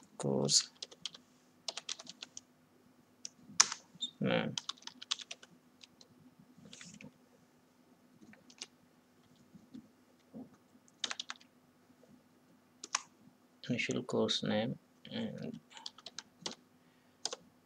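Keys clack on a computer keyboard in short bursts.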